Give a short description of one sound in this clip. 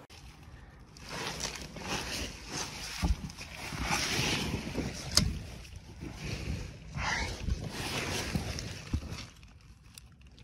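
Dry leaves and soil rustle and scrape as someone crawls through them.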